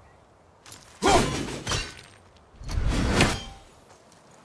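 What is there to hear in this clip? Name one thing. An axe is thrown and whooshes through the air.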